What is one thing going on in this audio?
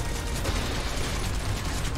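A gun fires in a video game.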